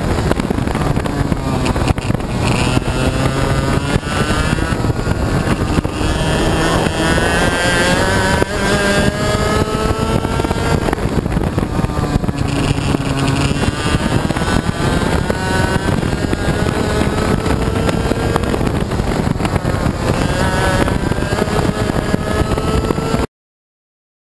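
A kart engine buzzes loudly, rising and falling in pitch as it speeds up and slows down.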